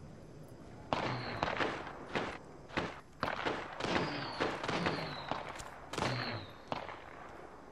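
A rifle fires in rapid bursts, with loud sharp cracks.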